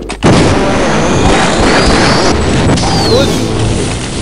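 A gun fires a crackling, buzzing energy beam.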